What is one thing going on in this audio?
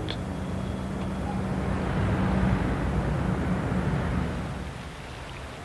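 Traffic rumbles steadily along a busy street.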